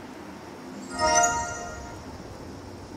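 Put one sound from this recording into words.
A bright magical chime rings out and fades.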